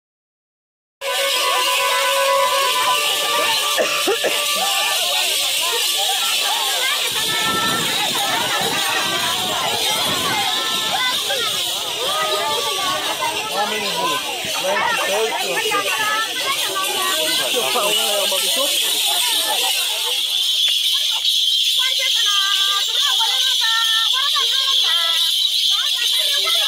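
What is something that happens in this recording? A crowd of women chant and sing loudly together outdoors.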